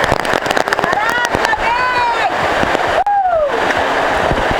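Young women shout and whoop over the storm.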